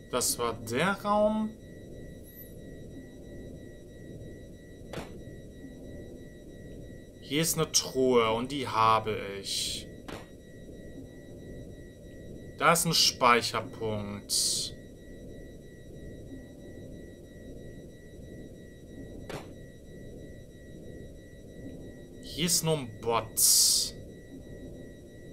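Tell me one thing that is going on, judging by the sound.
Soft electronic game music plays steadily.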